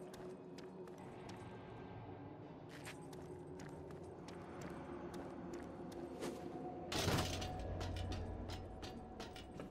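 Footsteps clatter on metal grating.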